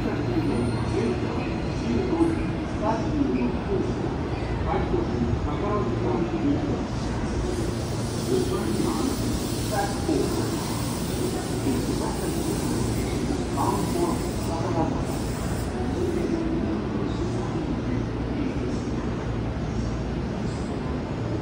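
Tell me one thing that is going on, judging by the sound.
A train rolls slowly in with a low, steady rumble.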